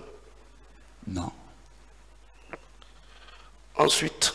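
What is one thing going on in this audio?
An elderly man speaks slowly into a microphone.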